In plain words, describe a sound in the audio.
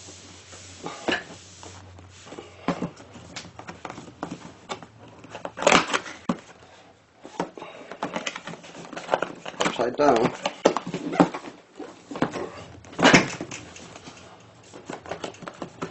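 Hands rub and tap on a cardboard box.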